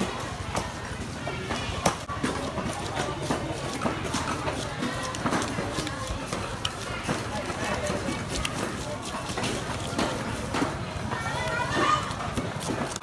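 A busy market crowd chatters nearby.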